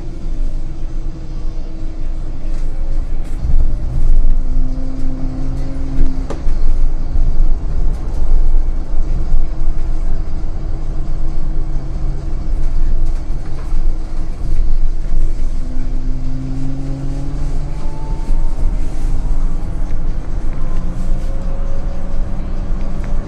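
A bus body rattles and creaks.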